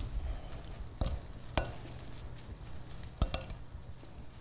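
A whisk clinks against a glass bowl.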